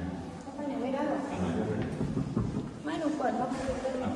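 A woman speaks briefly close by.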